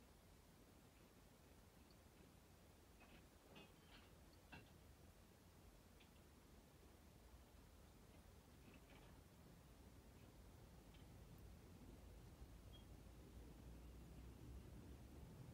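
Items clink faintly some distance away.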